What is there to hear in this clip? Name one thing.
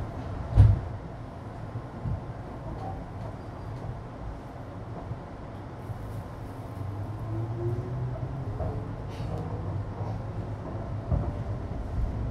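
A train car rumbles steadily along the tracks.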